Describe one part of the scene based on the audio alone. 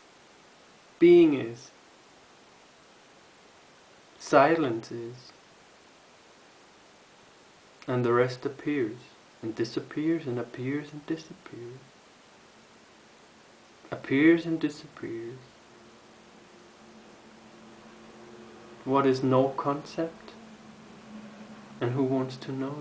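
A man speaks calmly and close up, in short phrases with pauses.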